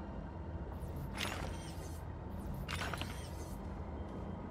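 A short bright whoosh sounds as a game item is scanned.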